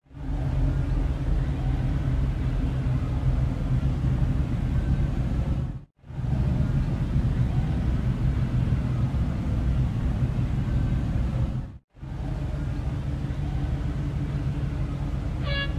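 Car engines idle with a deep, steady rumble.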